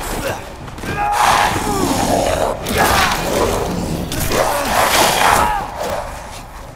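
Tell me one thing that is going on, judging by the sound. A creature snarls and growls loudly while grappling up close.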